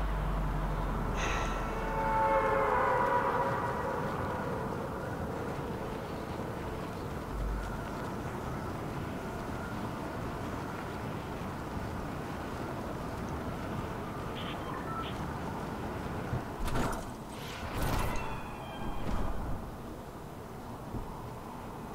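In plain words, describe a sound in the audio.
Wind rushes steadily past during a high fall through the air.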